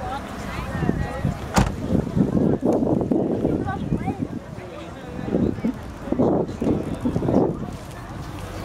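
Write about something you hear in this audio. Adult men and women chat at a distance.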